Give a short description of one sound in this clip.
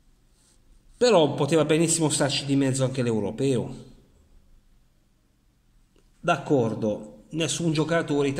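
A middle-aged man speaks close to the microphone with animation.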